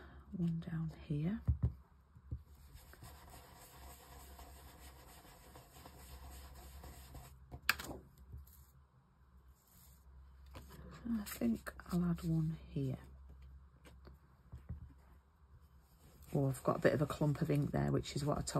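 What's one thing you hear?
A sponge dauber dabs softly on paper.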